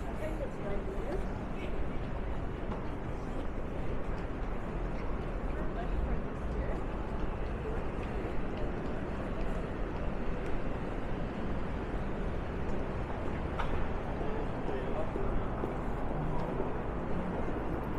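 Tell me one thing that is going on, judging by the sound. Footsteps tap on pavement nearby.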